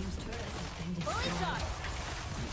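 A game tower collapses with a loud crash.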